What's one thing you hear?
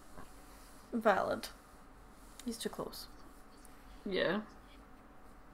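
A young woman speaks briefly and quietly, close by.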